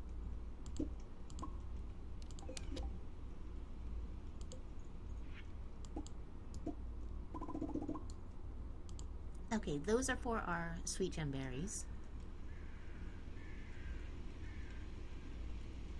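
Soft game menu clicks tick now and then.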